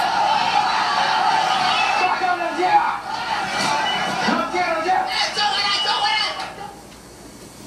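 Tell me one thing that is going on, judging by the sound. A crowd of men shout and clamour loudly.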